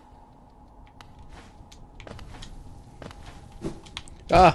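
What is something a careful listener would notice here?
Soft thuds sound as a small figure jumps and lands.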